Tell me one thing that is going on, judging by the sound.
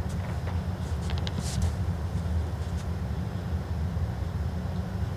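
A bowl rolls softly across a carpet with a low rumble.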